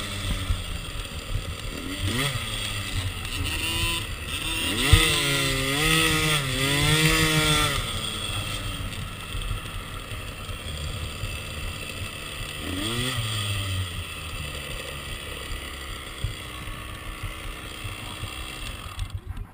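A dirt bike engine idles with a low rumble.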